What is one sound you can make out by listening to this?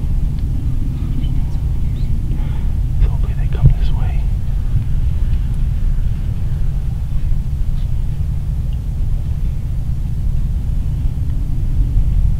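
A deer rustles through dry grass.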